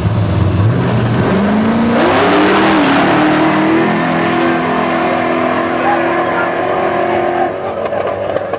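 Race car engines roar and rev up as the cars launch and speed away.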